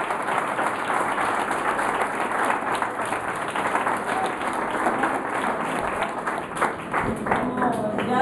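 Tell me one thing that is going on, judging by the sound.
A group of children clap their hands.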